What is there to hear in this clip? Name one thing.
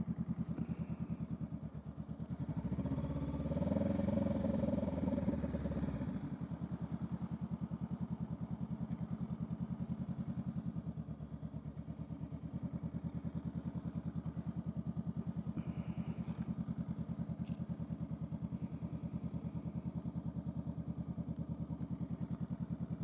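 A parallel-twin motorcycle engine idles with a steady, even pulse.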